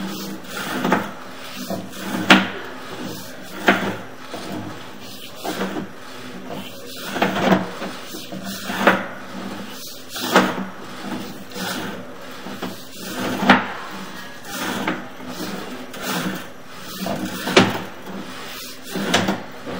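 Wheels knock and thump against a pipe, echoing hollowly.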